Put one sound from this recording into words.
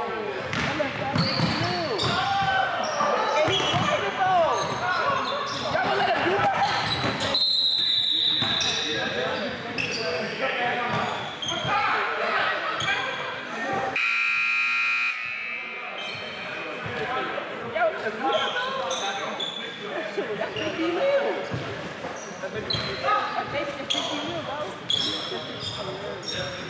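Players shout and call out to each other in a large echoing gym.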